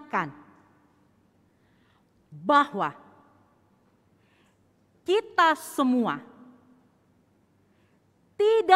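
A woman speaks slowly and expressively into a microphone, with a slight echo, pausing between phrases.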